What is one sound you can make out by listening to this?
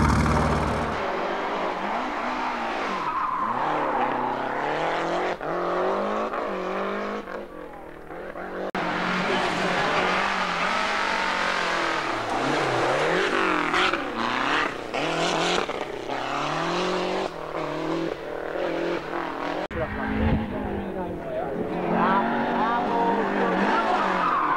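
A rally car engine revs hard, rising and falling in pitch through gear changes.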